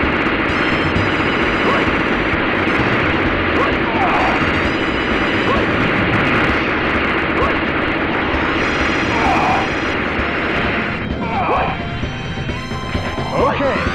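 Rapid gunfire and laser blasts crackle without pause.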